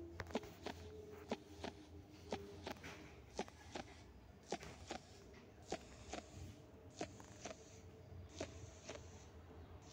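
Quick, even footsteps patter along a hard floor.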